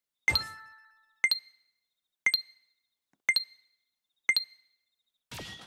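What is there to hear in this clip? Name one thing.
A countdown timer chimes sharply once a second.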